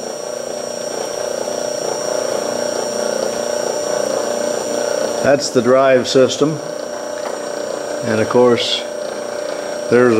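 An electric motor hums steadily as drive belts turn.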